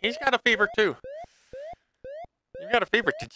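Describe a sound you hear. Short electronic beeps chirp in quick succession from a video game.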